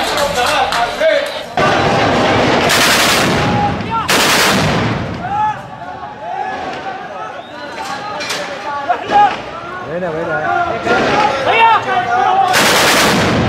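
Men shout excitedly nearby.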